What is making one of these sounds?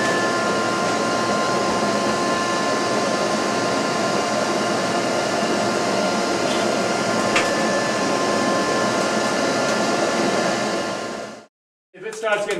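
A vacuum motor drones steadily.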